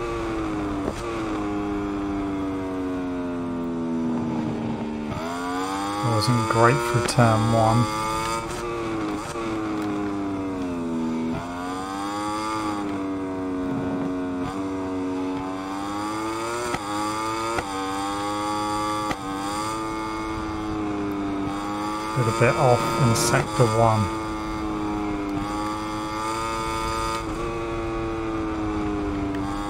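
A motorcycle engine whines loudly, rising and falling in pitch as the rider shifts gears.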